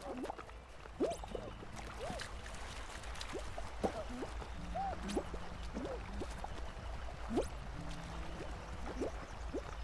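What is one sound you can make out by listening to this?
Short cartoonish game sound effects boing and chirp again and again.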